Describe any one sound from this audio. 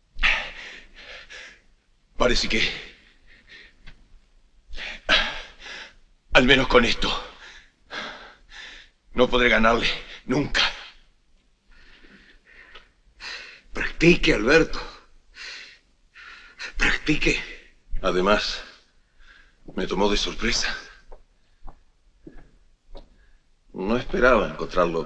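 A middle-aged man speaks firmly and close by.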